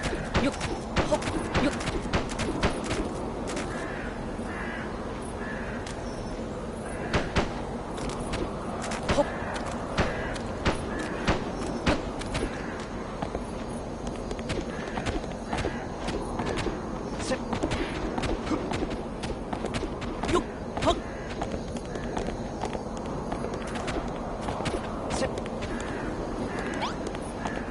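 A game character's footsteps thump on stone as the character climbs and hops.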